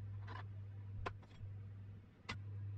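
Metal parts clink and clunk together.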